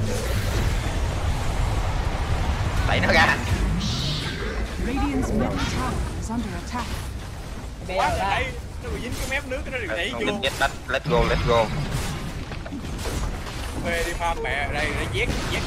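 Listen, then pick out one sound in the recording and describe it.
Magic blasts whoosh and crackle in a fast fantasy battle.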